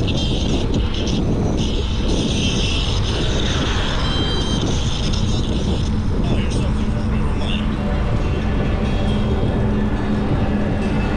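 Wind rushes steadily past while riding a bicycle.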